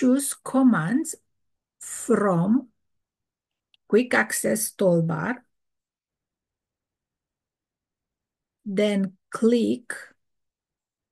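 A middle-aged woman speaks calmly over an online call, in short phrases with pauses.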